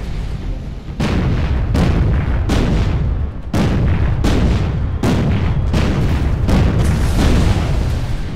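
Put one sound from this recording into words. Heavy guns fire in booming blasts, one after another.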